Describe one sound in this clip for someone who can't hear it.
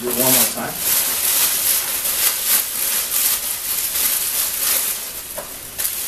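A plastic bag rustles and crinkles as it is twisted.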